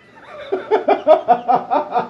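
A woman laughs.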